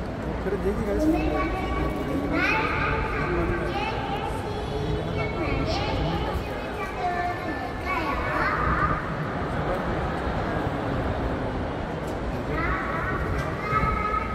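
A large crowd sings together.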